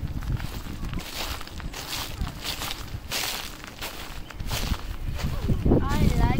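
Footsteps crunch on frosty grass.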